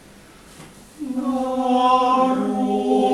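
A group of young men sings together in close harmony.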